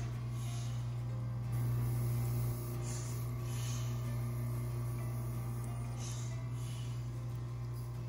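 An oxygen machine hums steadily.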